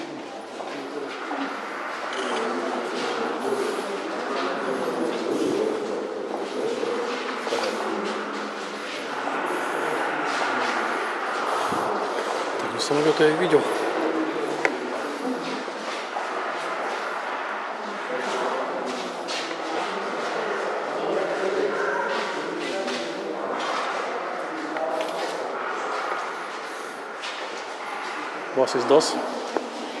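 Several men and children chatter over one another nearby in an echoing hall.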